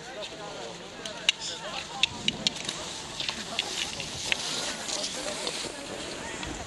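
Skis swish and poles click on packed snow as a skier glides past close by.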